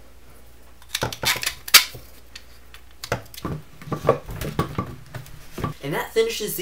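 Plastic parts click and knock together as they are fitted.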